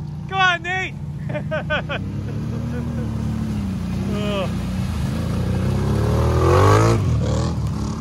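An ATV engine revs while driving through mud.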